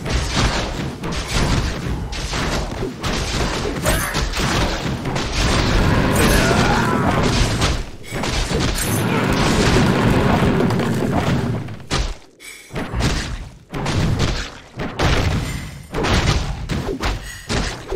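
Game spells and attacks clash and crackle.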